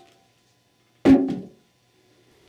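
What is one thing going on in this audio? An aluminium transmission case is set down on a wooden board with a knock.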